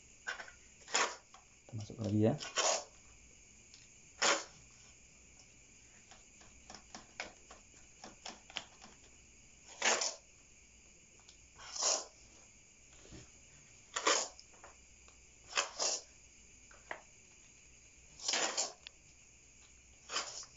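A metal spoon scrapes and scoops soil.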